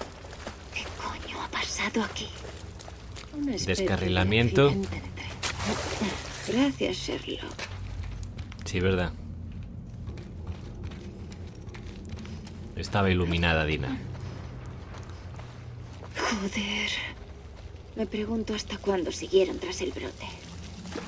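A young woman speaks quietly in a hushed voice.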